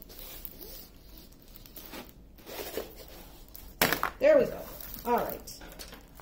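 A sheet of stiff paper rustles and crinkles as it is unrolled.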